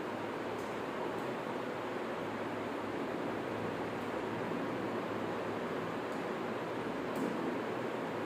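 A pen taps lightly on a hard board.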